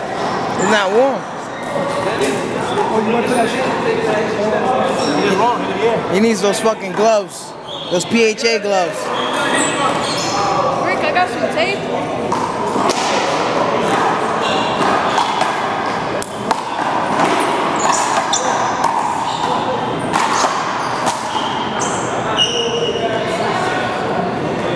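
Men talk and call out with animation close by, echoing in an indoor court.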